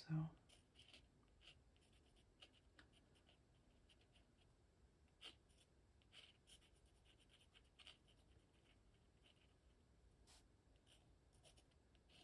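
A brush dabs and taps softly on paper.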